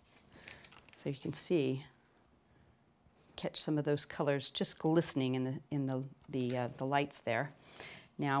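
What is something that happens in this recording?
A woman talks calmly, close to a microphone.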